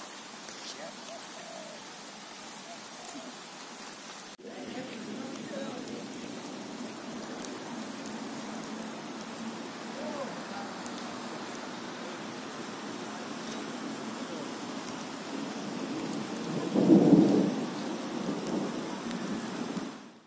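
Light rain falls steadily outdoors.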